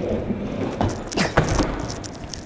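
A skateboard clacks sharply against a ramp edge.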